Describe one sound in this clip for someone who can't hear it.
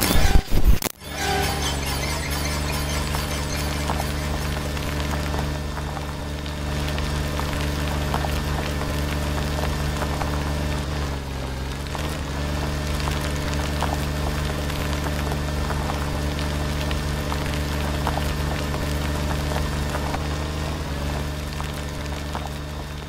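A car engine drones steadily from inside the car.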